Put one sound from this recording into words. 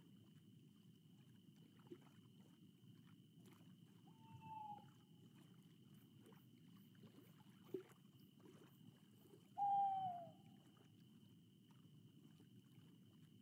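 Water laps gently and steadily against the shore.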